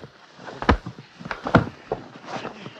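Bodies thump against the floor.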